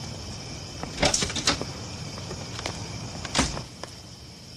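A door clicks open and bangs shut nearby.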